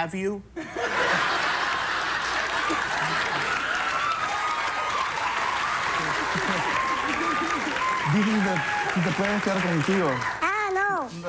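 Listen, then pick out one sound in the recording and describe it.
A studio audience laughs loudly.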